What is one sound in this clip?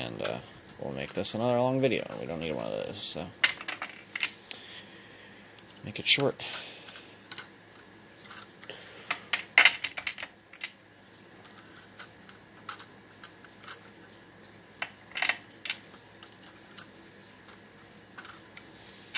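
Small brass cases click and clink against a plastic tray.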